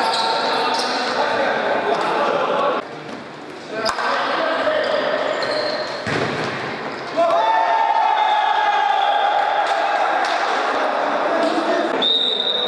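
A ball thuds off a foot in a large echoing hall.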